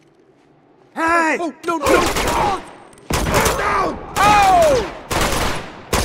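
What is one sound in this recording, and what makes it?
Gunshots fire in loud rapid bursts.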